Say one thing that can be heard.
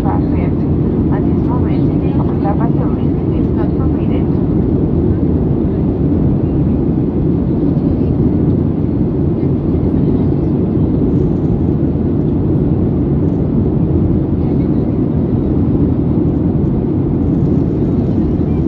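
A jet engine roars steadily, heard from inside the cabin.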